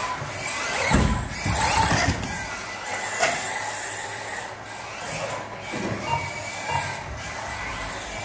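A small electric motor whines as a remote-control car races around.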